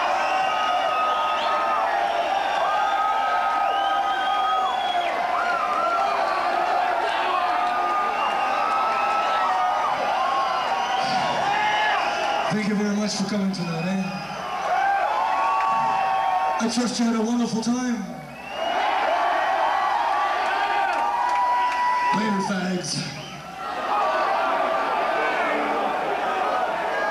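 A large crowd cheers, whistles and shouts in a big echoing hall.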